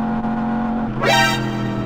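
A motorcycle engine revs sharply up near the end.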